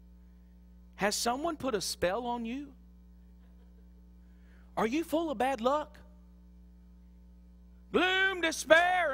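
A man speaks with emphasis through a microphone, pausing between phrases.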